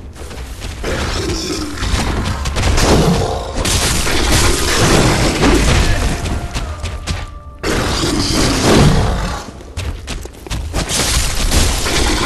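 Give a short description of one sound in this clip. Metal blades slash and clash in a fight.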